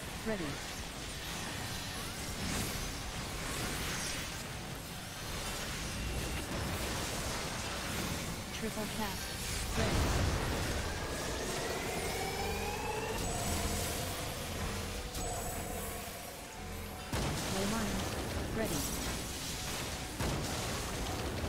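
Game battle effects whoosh and blast throughout.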